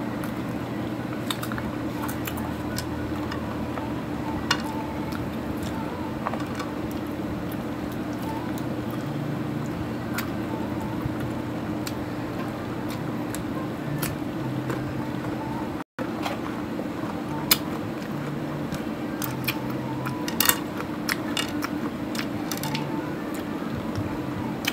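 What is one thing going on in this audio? A woman chews food loudly close to a microphone.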